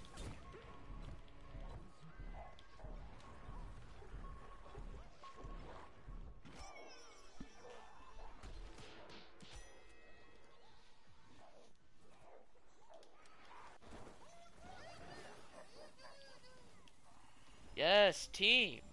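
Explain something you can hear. Cartoonish video game blasts and sound effects play.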